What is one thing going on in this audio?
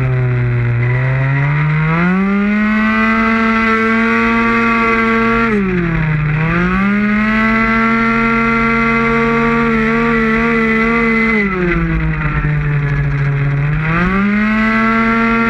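A motorcycle engine roars loudly, revving up and dropping as the gears change.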